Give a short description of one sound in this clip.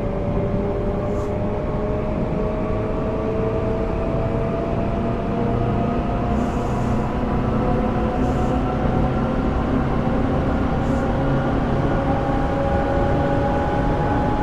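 Train wheels rumble steadily on the rails.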